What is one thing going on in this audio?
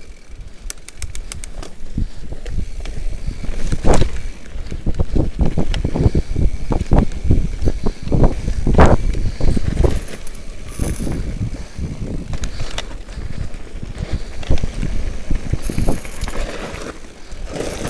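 A mountain bike rattles and bumps over a rough dirt trail.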